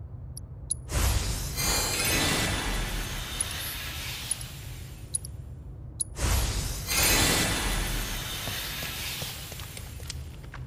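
A magic spell bursts with a rushing, glittering hiss.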